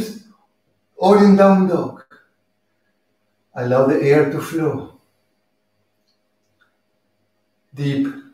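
A middle-aged man speaks calmly and clearly, with pauses between phrases.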